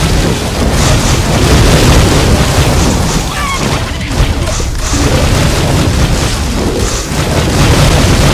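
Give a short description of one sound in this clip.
Fire roars and crackles.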